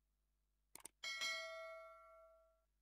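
A small bell chimes once and slowly fades.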